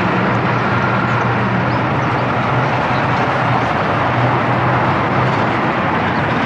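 Tyres roar steadily on the road as traffic passes.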